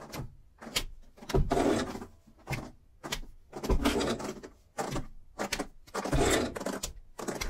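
Feet thump and shuffle on a wooden floor.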